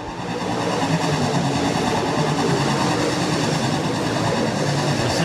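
Race car engines roar loudly as cars speed around a dirt track.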